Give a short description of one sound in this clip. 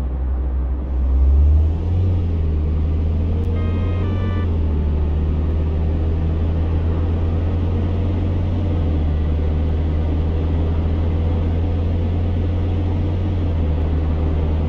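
A car engine drops in pitch briefly as gears shift.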